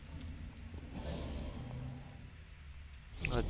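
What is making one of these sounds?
A magical power crackles and whooshes.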